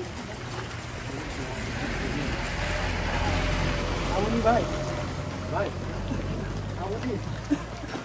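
A pickup truck drives past.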